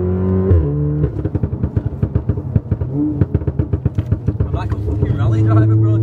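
A car engine stutters and pulses rapidly.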